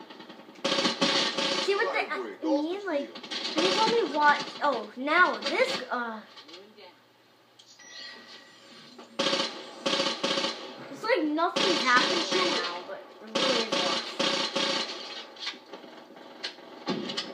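Rapid gunfire rattles in bursts from a video game.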